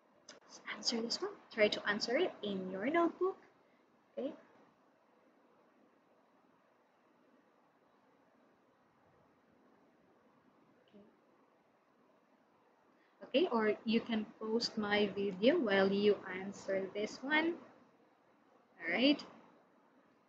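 A young woman speaks clearly into a close microphone, explaining at a calm pace.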